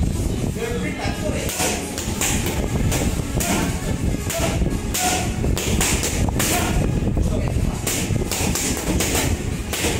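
Boxing gloves smack hard against punch mitts in quick bursts.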